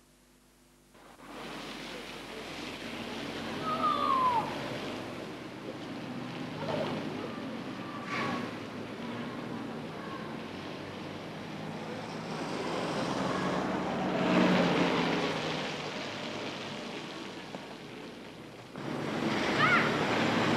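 Traffic rumbles along a wet city street.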